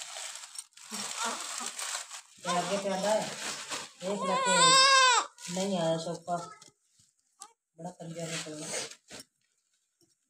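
A newborn baby cries in short wailing bursts close by.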